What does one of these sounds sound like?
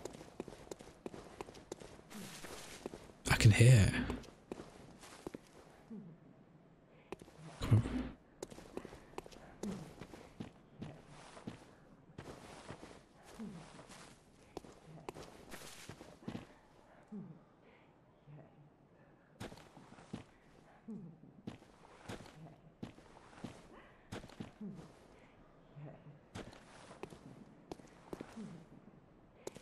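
Footsteps crunch on gravel and leaves.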